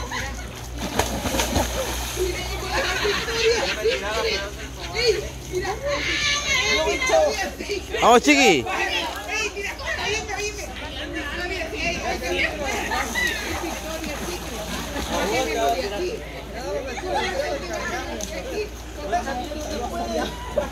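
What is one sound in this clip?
Water splashes as swimmers move about.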